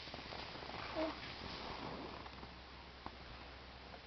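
A young child giggles softly.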